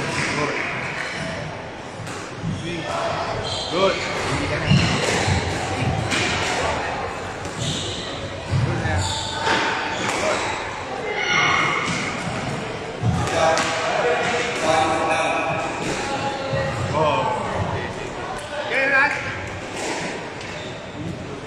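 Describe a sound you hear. A squash ball smacks sharply against the walls in an echoing court.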